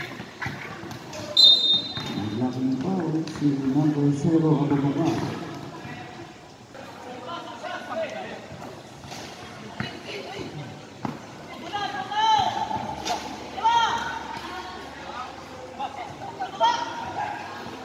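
Sneakers squeak sharply on a court floor.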